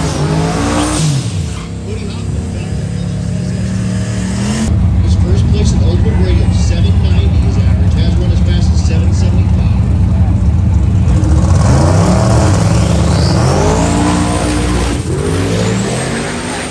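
A big car engine rumbles loudly and steadily, then roars away.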